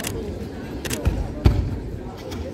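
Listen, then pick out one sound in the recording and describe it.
Bare feet thud on a foam mat.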